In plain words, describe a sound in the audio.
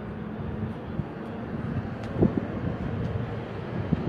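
Dull knocks and thumps sound against a metal stall door.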